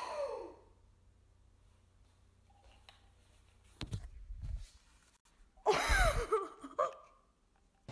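A young woman screams loudly close by.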